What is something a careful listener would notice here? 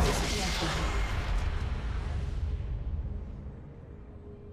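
A loud explosion booms and rumbles, then slowly fades away.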